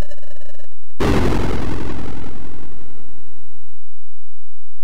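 A loud electronic roar bursts out and slowly fades away.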